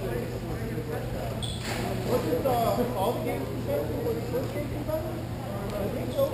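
Young players shout and call out across an echoing hall.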